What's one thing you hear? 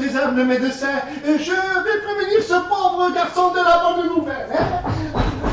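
A man sings with animation on a stage.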